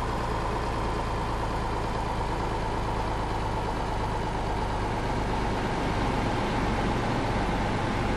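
A truck engine hums steadily with a low drone.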